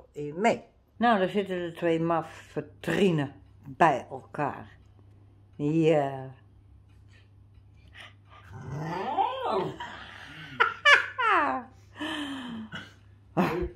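A dog howls and yowls in long, wavering cries.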